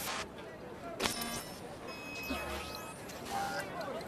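A computer interface chimes with short electronic beeps.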